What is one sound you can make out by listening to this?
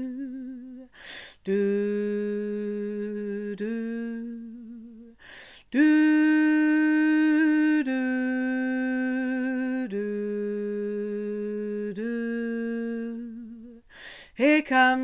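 A woman breathes in sharply between sung notes.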